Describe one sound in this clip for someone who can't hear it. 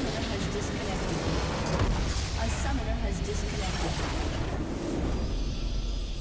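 A structure explodes and crumbles in a game.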